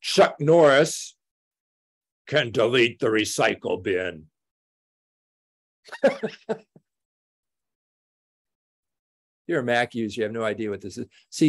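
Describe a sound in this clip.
An elderly man speaks calmly through an online call, pausing between phrases.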